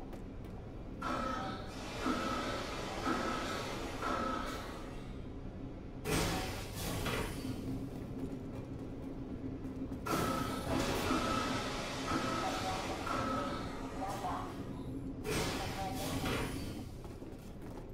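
An alarm beeps repeatedly.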